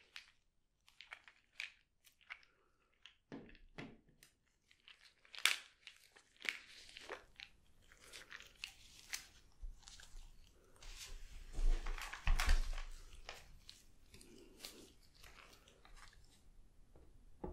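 Rubber gloves rustle and squeak.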